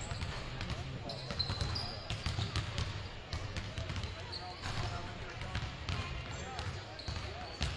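Basketballs bounce repeatedly on a hard floor in a large echoing gym.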